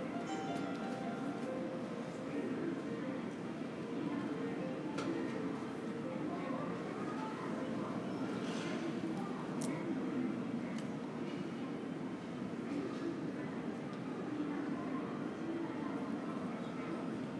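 A steady low hum fills a large echoing hall.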